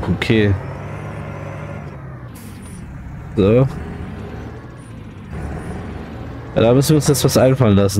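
A tractor engine hums steadily at idle.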